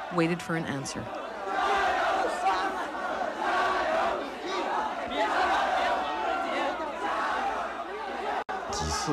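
A large crowd murmurs and calls out close by.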